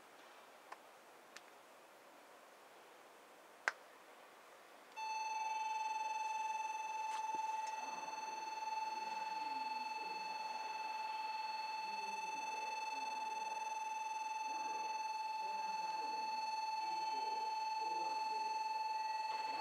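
An electric train rolls slowly closer along the tracks.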